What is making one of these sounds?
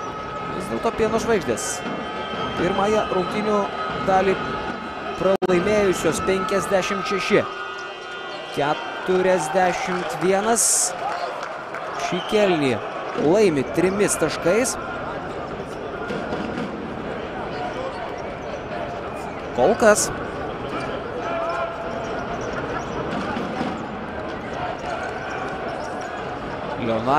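A crowd murmurs throughout a large echoing arena.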